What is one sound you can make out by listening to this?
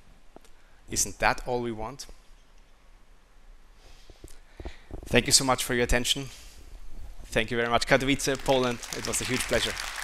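A young man speaks calmly through a microphone in a large hall.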